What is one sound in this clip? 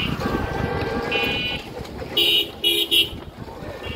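An auto-rickshaw engine putters past on a street.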